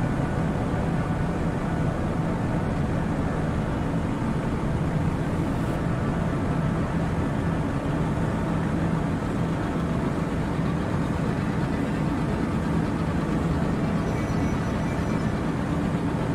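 A spaceship engine roars with a steady, low rumble.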